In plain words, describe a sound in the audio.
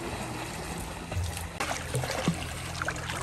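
A swimmer kicks and splashes close by.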